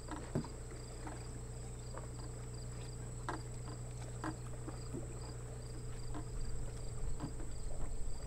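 Drone propellers whine steadily close by.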